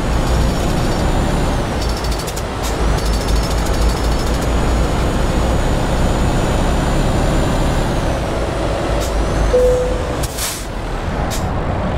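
A truck engine rumbles steadily while driving along a road.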